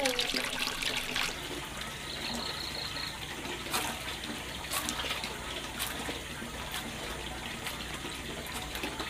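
A metal basin clatters and knocks in someone's hands.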